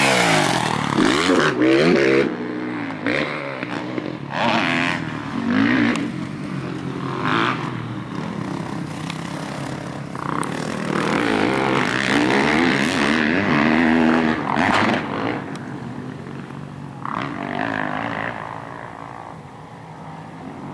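A dirt bike engine revs and roars, rising and falling in pitch.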